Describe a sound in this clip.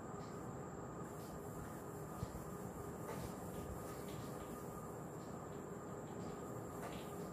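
A cloth softly wipes across a whiteboard.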